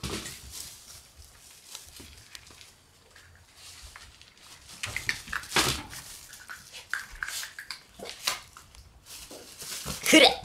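A puppy rustles and crinkles a plastic bag.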